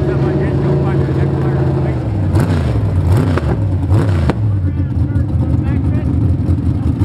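A race car engine roars loudly and revs up and down close by.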